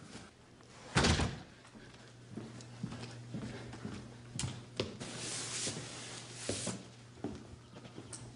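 Footsteps cross a wooden floor.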